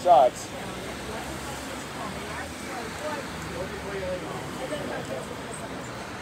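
A bearded man talks calmly close by.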